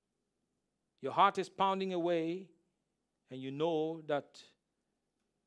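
A man speaks with animation into a close microphone, in short bursts.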